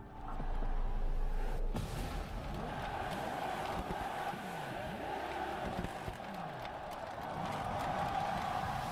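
A sports car engine roars and revs up and down.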